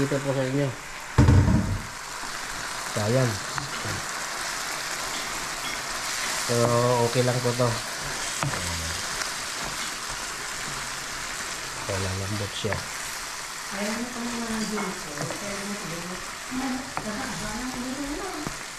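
Food sizzles and bubbles in a hot pan.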